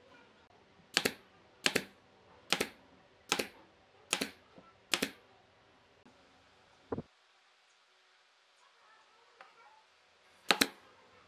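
A pneumatic brad nailer fires nails into wood.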